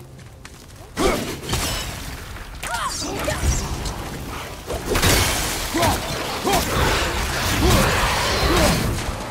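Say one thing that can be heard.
An axe strikes hard in a fight, with heavy thuds.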